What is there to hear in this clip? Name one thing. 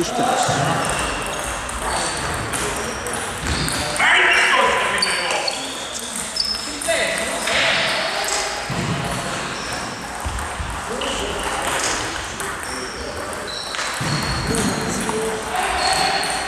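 A table tennis ball clicks on bats and a table in a large echoing hall.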